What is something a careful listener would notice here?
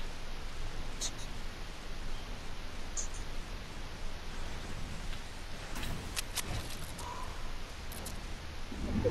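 Wooden walls snap into place with sharp clicks.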